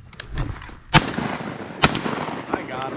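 A shotgun fires twice, loud and sharp, outdoors.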